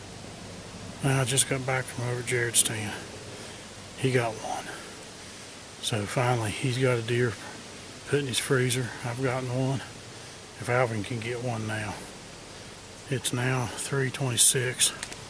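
An elderly man speaks calmly and quietly, close to the microphone.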